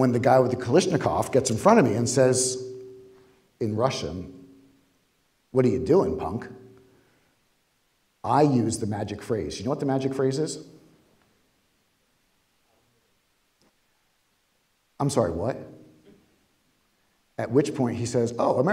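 A man speaks through a microphone in bursts, with pauses, echoing in a large hall.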